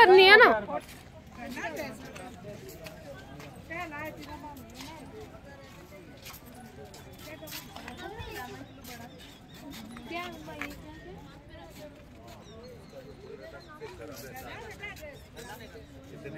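Men and women chatter quietly in the background outdoors.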